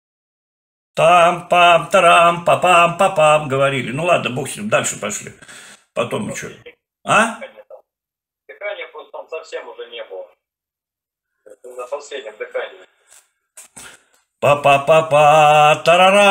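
A young man speaks calmly through a laptop speaker in an online call.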